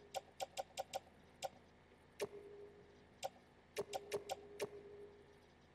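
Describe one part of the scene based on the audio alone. Short electronic blips click in quick succession.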